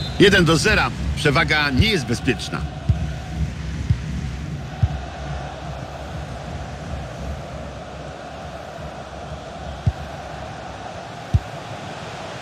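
A large stadium crowd murmurs and roars steadily in the distance.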